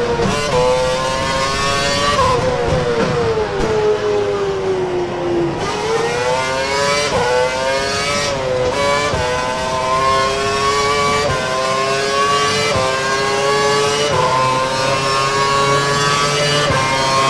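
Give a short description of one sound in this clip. A racing car engine screams, its pitch dropping on braking and rising through the gear changes.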